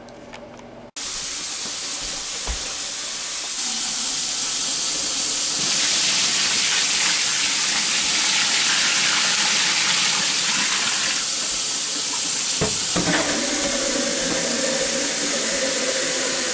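Water gushes loudly into a washing machine tub.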